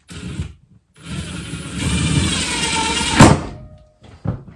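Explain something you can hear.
A power drill whirs, rising in pitch, then stops.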